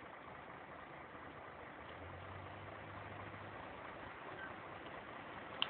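A bus engine rumbles as a bus turns slowly nearby.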